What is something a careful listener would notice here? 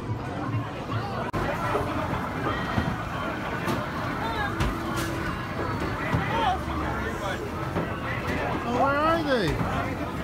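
Arcade machines beep and play electronic jingles.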